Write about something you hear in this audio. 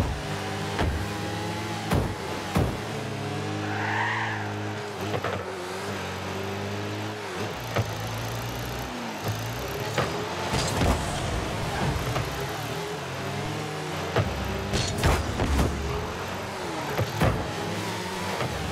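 A car engine hums and revs steadily throughout.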